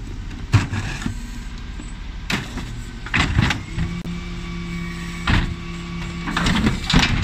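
Plastic wheelie bins bang and clatter against a lorry's lift.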